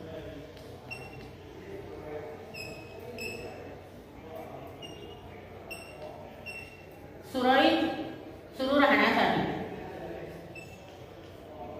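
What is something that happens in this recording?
Chalk squeaks and taps on a blackboard.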